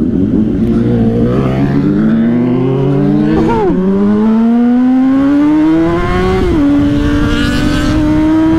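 A motorcycle engine revs up and down through the gears.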